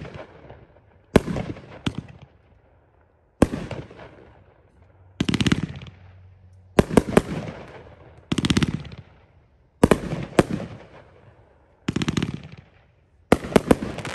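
Fireworks crackle and sizzle after each burst.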